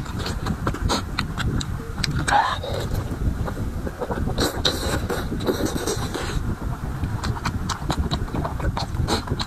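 A man chews and slurps food loudly and close to a microphone.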